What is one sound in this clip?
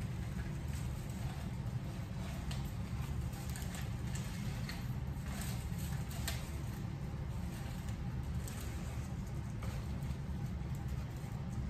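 Plant leaves rustle as they are handled.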